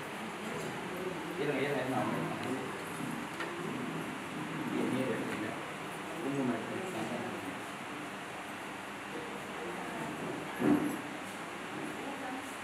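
A crowd of men and women talk quietly in the background.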